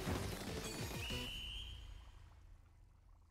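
A shrill game whistle sounds to end the match.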